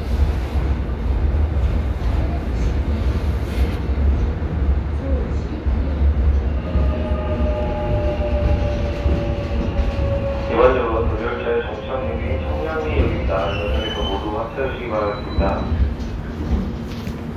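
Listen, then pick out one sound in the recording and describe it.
A subway train rumbles along the tracks.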